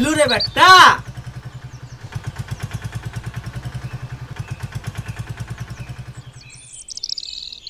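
An auto-rickshaw engine putters steadily as it drives along.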